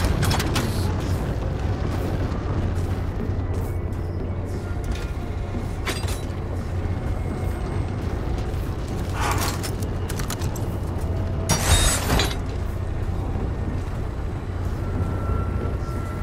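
Heavy boots thud on a metal floor.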